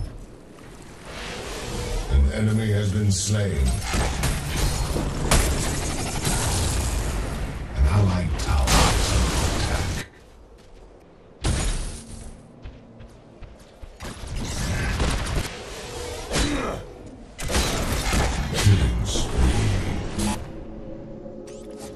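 Gunfire and blasts ring out in a loud fight.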